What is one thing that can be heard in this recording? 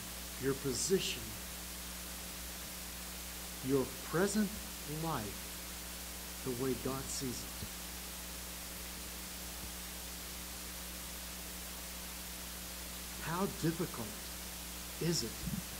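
An elderly man speaks slowly and deliberately through a microphone, with long pauses.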